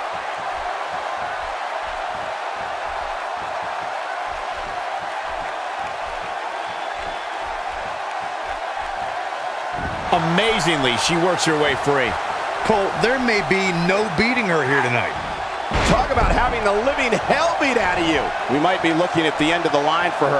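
A large crowd murmurs and cheers in a big echoing arena.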